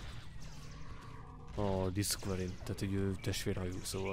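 Energy weapons fire with sharp, buzzing zaps.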